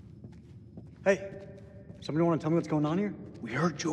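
A man shouts out, echoing in a stone hall.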